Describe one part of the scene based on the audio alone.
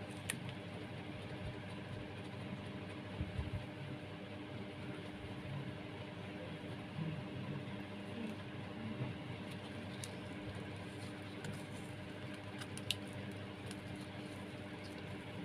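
Rough twine rustles and scratches softly as hands wind and pull it.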